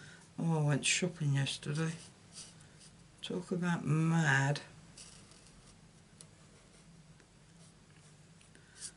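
An alcohol marker rubs across card stock.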